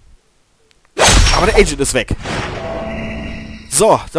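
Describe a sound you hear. A claw slash hits with a sharp burst of game sound effects.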